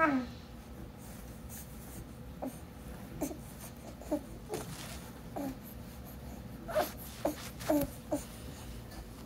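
A baby coos and babbles in short bursts close by.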